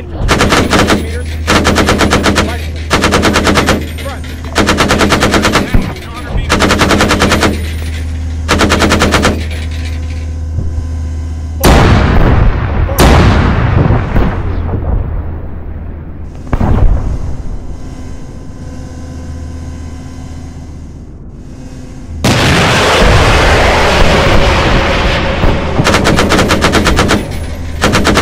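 Heavy cannon fire rings out in short, repeated bursts.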